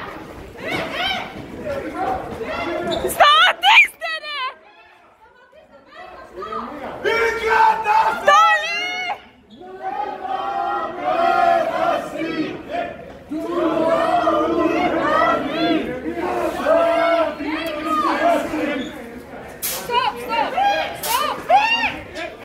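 A crowd of men shout and yell excitedly outdoors.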